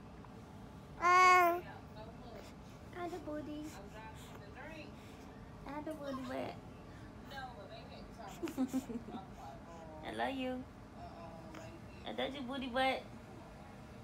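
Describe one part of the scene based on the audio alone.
A baby coos and babbles close by in short bursts.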